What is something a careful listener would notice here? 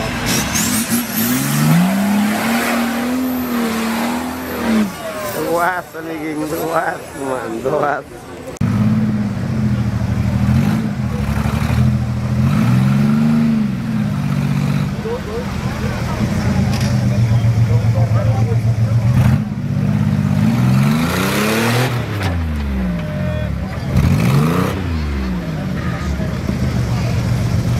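An off-road engine revs hard, rising and falling in pitch.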